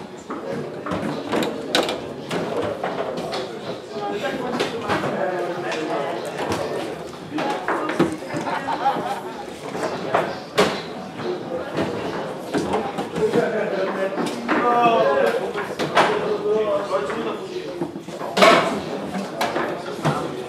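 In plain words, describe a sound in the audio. Foosball rods rattle and thud as they are spun and slid.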